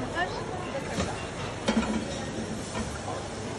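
A metal pan knocks and clatters on a stove.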